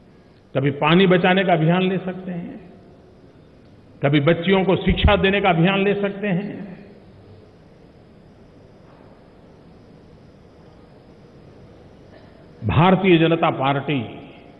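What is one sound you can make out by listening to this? An elderly man speaks forcefully through a microphone, pausing between phrases.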